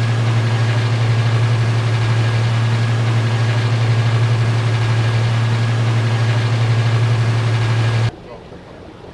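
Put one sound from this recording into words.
A boat motor hums steadily and then cuts off.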